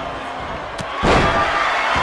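A body slams heavily onto a wrestling ring.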